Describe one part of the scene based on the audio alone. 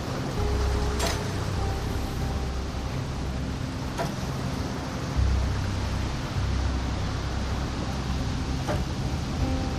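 Soft clicks sound as menu items are selected.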